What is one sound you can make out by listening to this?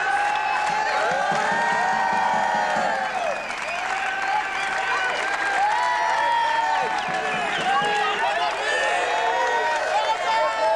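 A crowd cheers and shouts loudly close by, echoing in a large hall.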